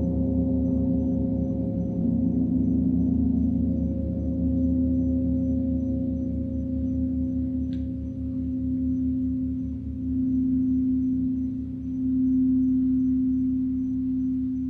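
Crystal singing bowls hum with a steady, swelling ringing tone.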